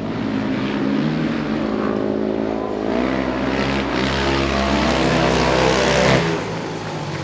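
Motorcycle engines roar loudly as the bikes race around a track.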